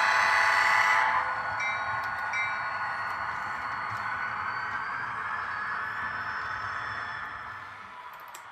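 Model locomotives hum and whir along the track, slowly fading away.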